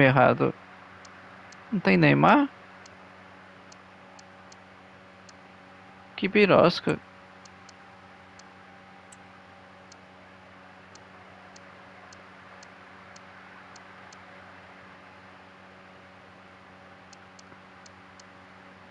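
Soft menu clicks tick as a selection moves from item to item.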